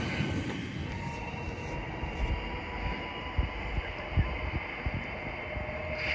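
Another train approaches and rumbles closer.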